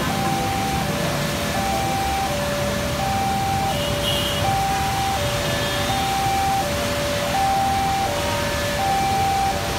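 Motorbikes drive past on a wet road.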